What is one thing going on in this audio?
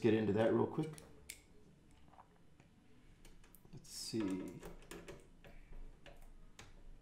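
Small clicks and taps come and go.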